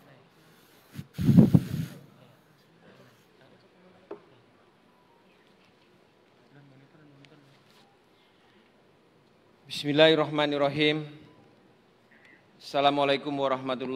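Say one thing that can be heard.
A man speaks calmly into a microphone, heard over loudspeakers.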